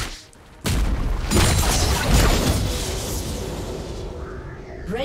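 Magic spell effects whoosh and crackle loudly.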